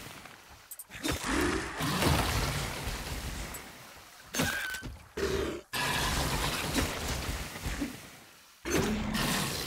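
Blows and weapon strikes land in a short, noisy fight.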